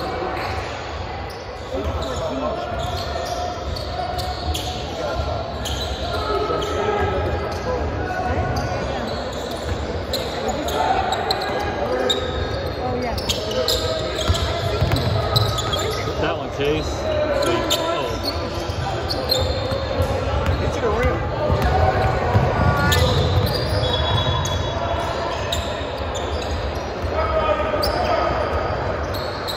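Young players shout and call out across an echoing gym.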